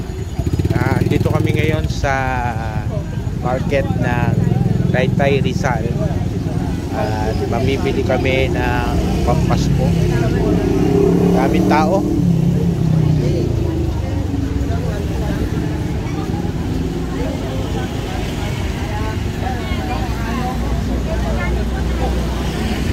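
Motorbike engines hum past on the street.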